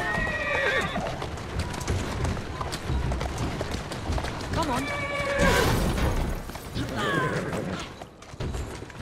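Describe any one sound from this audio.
A horse-drawn carriage rattles over cobblestones.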